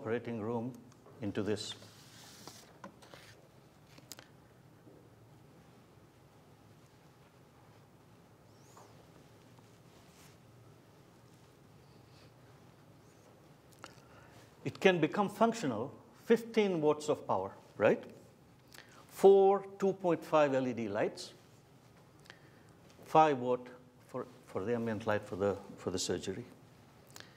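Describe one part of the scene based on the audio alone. A middle-aged man speaks steadily into a microphone, with pauses.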